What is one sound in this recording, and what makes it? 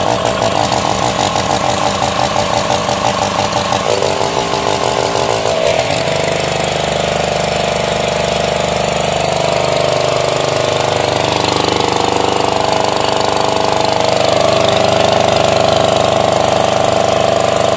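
A small petrol engine runs steadily, driving a water pump.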